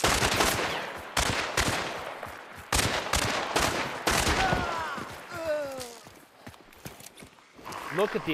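Footsteps rustle through grass and dry undergrowth.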